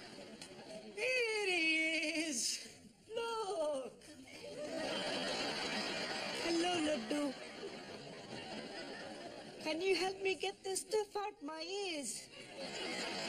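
A young woman speaks with animation.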